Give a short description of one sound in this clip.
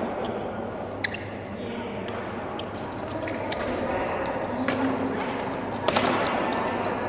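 Rackets strike a shuttlecock with sharp pops in a large echoing hall.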